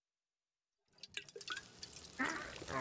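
Water sprinkles from a watering can.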